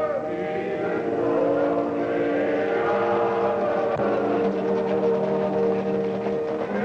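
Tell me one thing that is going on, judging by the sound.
Horses' hooves thud on a dirt road as riders trot closer.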